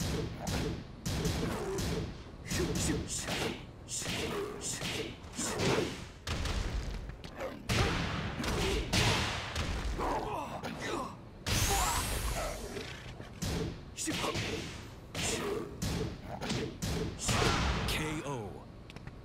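Punches and kicks land with sharp, heavy thuds in quick bursts.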